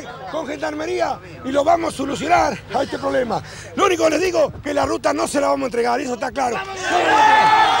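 A middle-aged man shouts with agitation into microphones outdoors.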